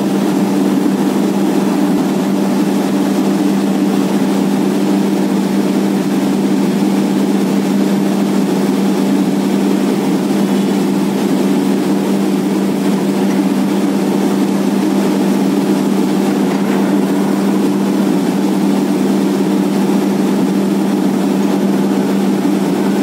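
A borewell drilling rig's engine drones under load.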